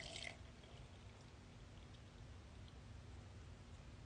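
Milk pours and splashes into a jar.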